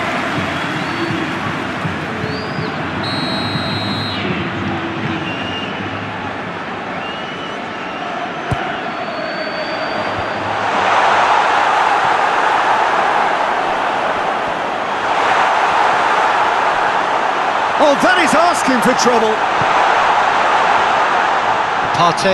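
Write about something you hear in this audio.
A stadium crowd roars steadily and swells louder at times.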